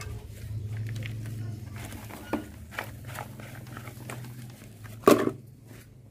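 Soil pours from a bucket into a pot with a soft rustle.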